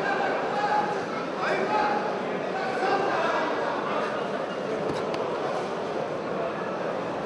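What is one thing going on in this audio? Two wrestlers scuffle and thud on a padded mat.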